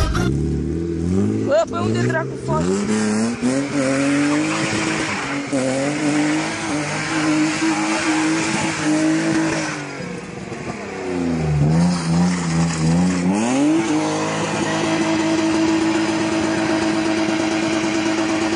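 A car engine revs hard, rising and falling.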